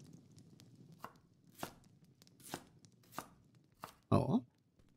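A knife chops through a vegetable on a board with sharp knocks.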